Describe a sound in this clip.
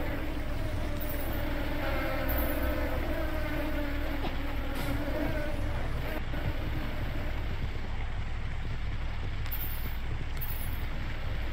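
A magic beam fizzes and crackles in short bursts.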